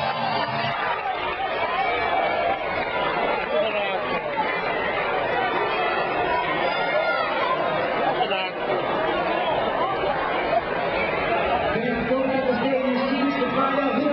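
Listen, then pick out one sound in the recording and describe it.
A large crowd cheers and roars loudly in an echoing arena.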